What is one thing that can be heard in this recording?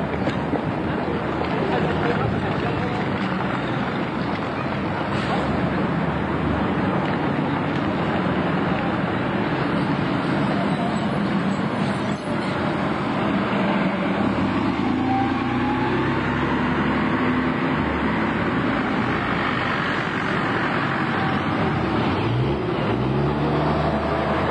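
Traffic hums along a busy street outdoors.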